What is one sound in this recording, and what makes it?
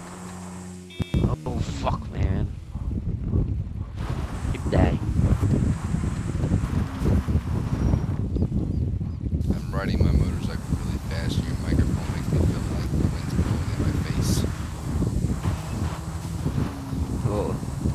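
A motorbike engine revs and roars as the bike rides over rough dirt.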